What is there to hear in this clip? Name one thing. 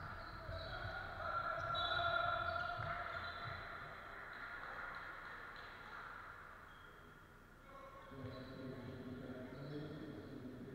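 Sneakers squeak on a hard floor in a large echoing hall.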